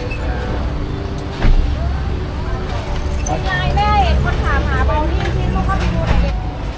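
Several adults chatter nearby outdoors.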